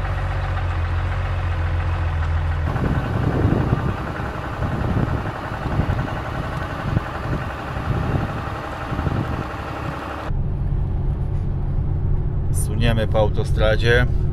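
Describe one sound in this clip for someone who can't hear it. A pickup truck engine hums steadily while driving.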